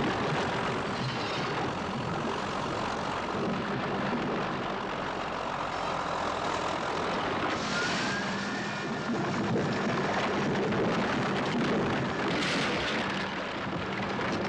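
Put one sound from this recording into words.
A bulldozer engine rumbles and roars.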